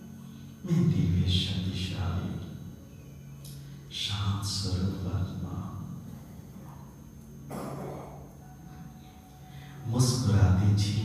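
A middle-aged man speaks with animation into a microphone over a loudspeaker.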